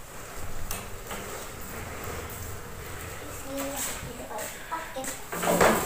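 Plastic tricycle wheels rumble over a hard floor.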